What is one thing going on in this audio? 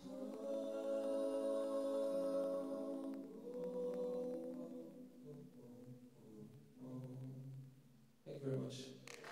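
A group of men and a woman sing together in harmony.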